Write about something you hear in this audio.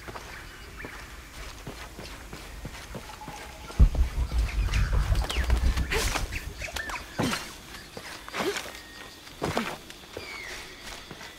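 Footsteps fall on a dirt path.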